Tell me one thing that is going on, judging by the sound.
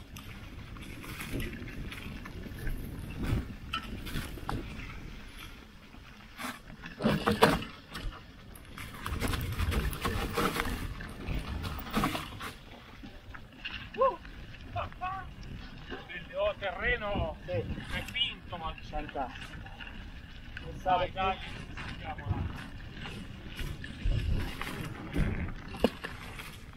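A mountain bike rattles and clanks over bumps.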